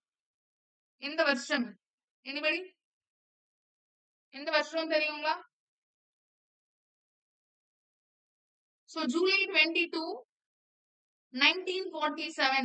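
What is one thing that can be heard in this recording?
A young woman speaks calmly into a close microphone, in short bursts with pauses.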